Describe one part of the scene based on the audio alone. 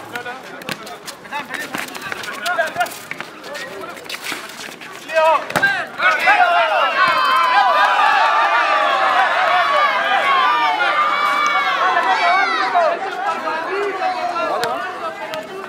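A crowd talks and calls out outdoors.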